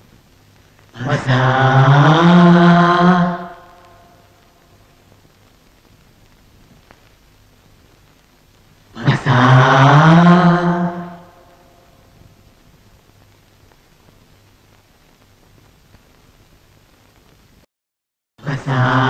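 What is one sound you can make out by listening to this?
A man cries out in a long, drawn-out, rising wail close by.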